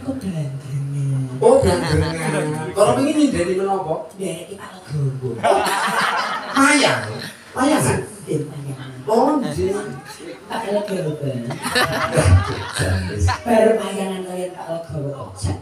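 A young man speaks animatedly into a microphone, heard through loudspeakers.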